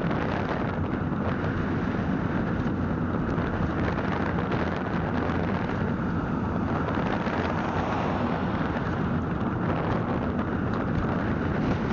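Wind buffets loudly against a microphone on a moving vehicle.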